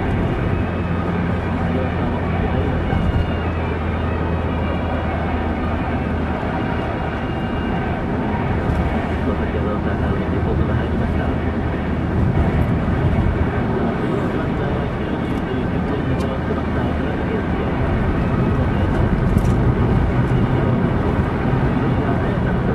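Tyres roar steadily on a paved road.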